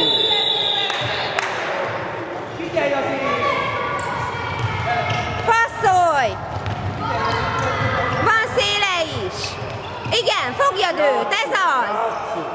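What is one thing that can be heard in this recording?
Young players shout and call out to each other in an echoing hall.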